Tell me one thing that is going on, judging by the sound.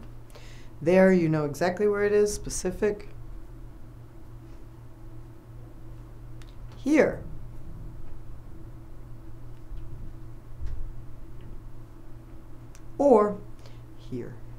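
A woman speaks calmly and clearly into a close microphone, saying single words with pauses between them.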